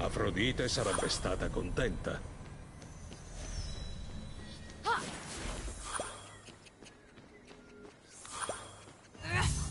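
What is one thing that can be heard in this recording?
Bright magical chimes ring out as an item is collected.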